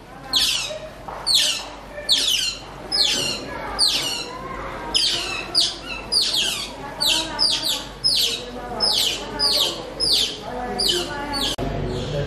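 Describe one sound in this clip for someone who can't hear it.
Otters give high, repeated chirping calls.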